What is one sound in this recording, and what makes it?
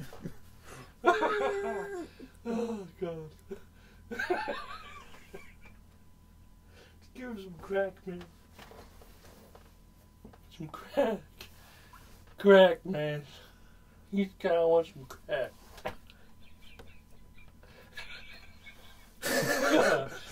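A second young man laughs loudly nearby.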